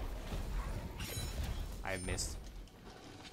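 Sword blows strike and clang.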